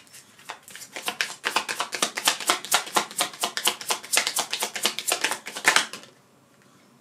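Playing cards riffle and flutter quickly as a deck is shuffled.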